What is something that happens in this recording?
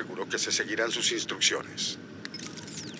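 An elderly man speaks calmly through a radio.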